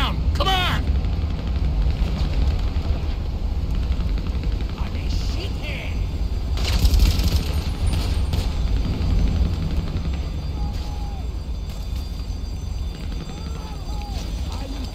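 Footsteps tread on metal stairs and gravel.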